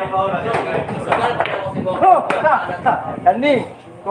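Billiard balls clack together.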